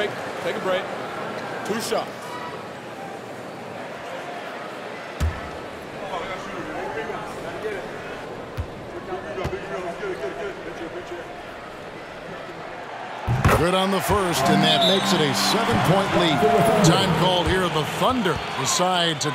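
A crowd murmurs in a large echoing arena.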